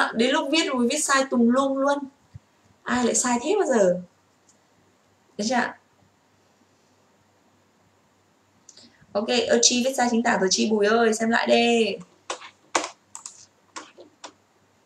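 A young woman talks close to a microphone, explaining with animation.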